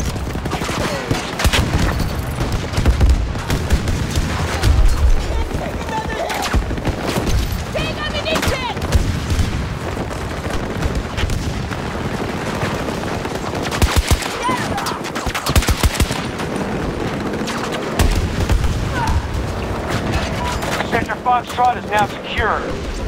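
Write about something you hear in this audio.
Gunshots crack in rapid bursts, loud and close.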